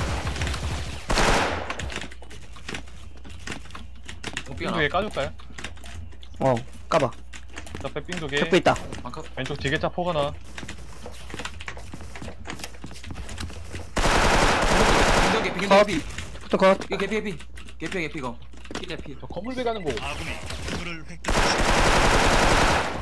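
An assault rifle fires in automatic bursts.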